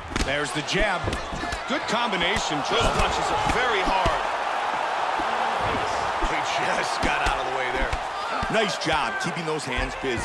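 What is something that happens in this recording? Fighters' punches and kicks land with dull thuds.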